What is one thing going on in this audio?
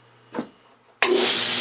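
A belt sander whirs loudly.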